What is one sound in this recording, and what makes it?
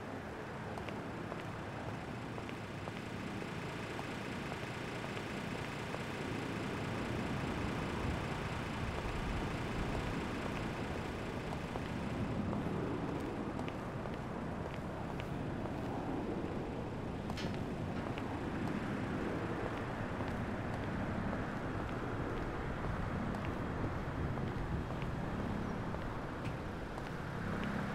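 Footsteps walk steadily over hard pavement.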